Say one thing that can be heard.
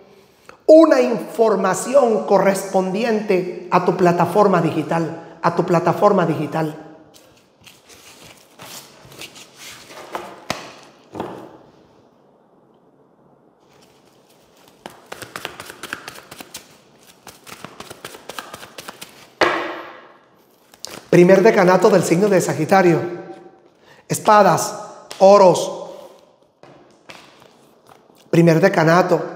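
A middle-aged man speaks with animation close to a microphone, pausing now and then.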